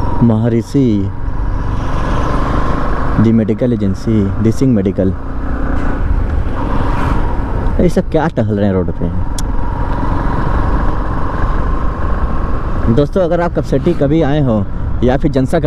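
A motorcycle engine hums steadily while riding.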